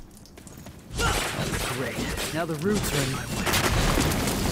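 A blade slashes into a fleshy mass with wet, heavy thuds.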